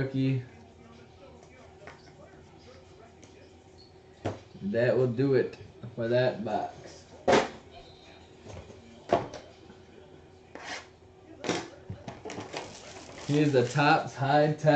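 Cardboard and plastic packaging rustle and tap as it is handled.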